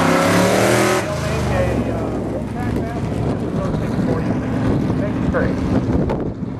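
A race car engine roars past and fades into the distance.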